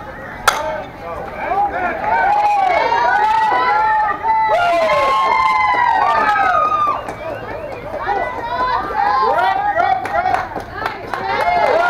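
Young women shout and cheer excitedly outdoors.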